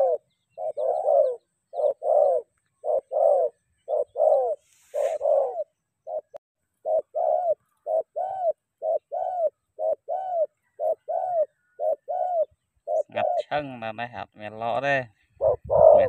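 A dove coos repeatedly in soft, rhythmic calls close by.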